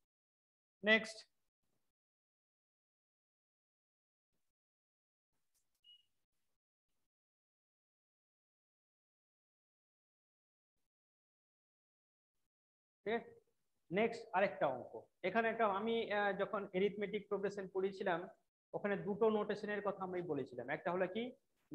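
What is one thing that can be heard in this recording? A man speaks clearly and calmly, close to a microphone, explaining.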